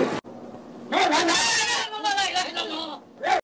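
A woman shrieks loudly.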